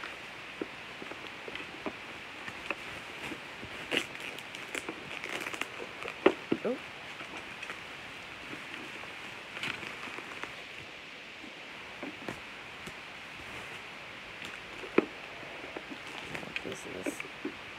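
Plastic bubble wrap crinkles and rustles as it is handled.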